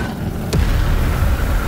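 Rocket engines blast to life with a sudden boom.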